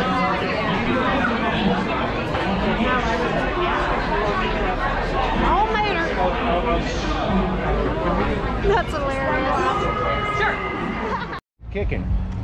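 Many people chatter and talk outdoors.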